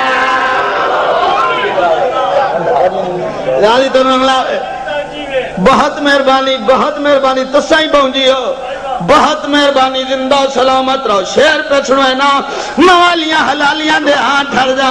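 A man speaks forcefully through a loudspeaker, his voice echoing.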